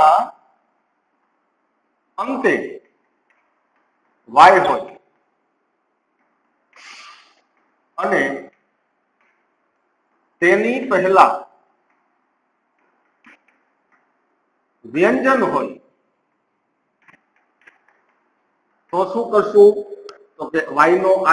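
A man speaks calmly in short bursts with pauses, close by.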